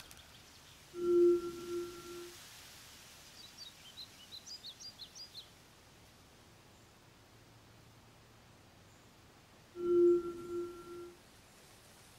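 A soft low chime rings out and fades.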